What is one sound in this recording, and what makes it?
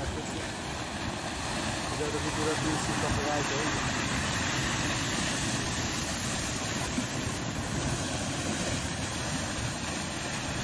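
A muddy flood river roars and rushes loudly.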